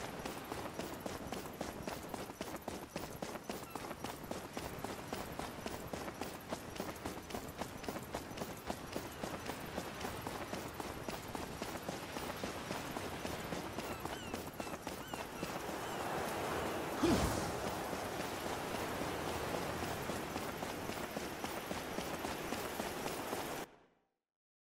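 Quick footsteps run steadily over stone.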